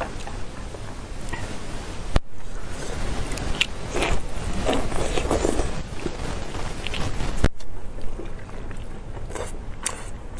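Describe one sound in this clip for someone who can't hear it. Sticky sauce squelches as food is squeezed by hand.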